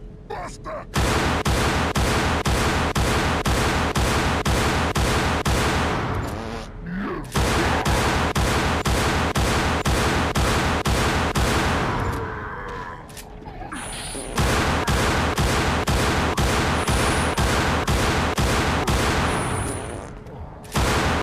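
A handgun fires rapid shots in quick bursts.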